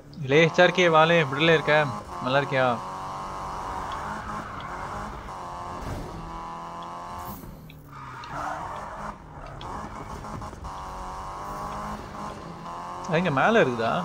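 A car engine roars at high revs.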